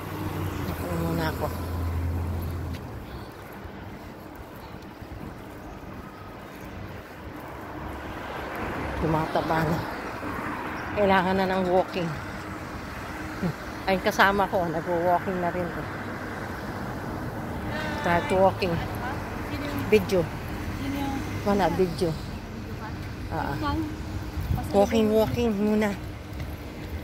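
A middle-aged woman talks casually close by, in short bursts.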